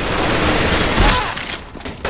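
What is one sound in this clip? A rifle fires a shot at close range.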